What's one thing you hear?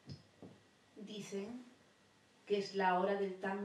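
A woman speaks into a microphone close by, with animation.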